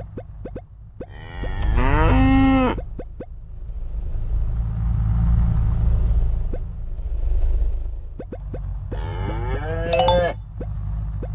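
A truck horn blares loudly, then fades.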